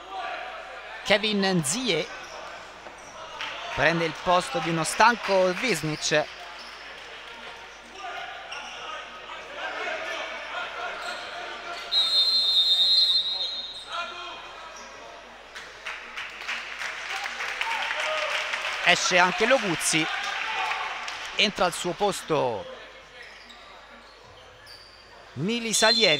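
Young men shout to each other across an echoing indoor court.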